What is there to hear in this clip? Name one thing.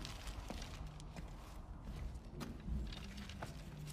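Paper crumples.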